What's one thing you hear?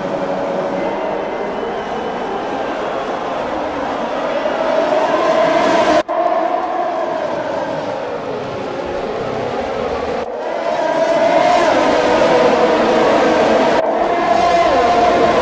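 Racing car engines roar and whine as they speed past, rising and falling in pitch.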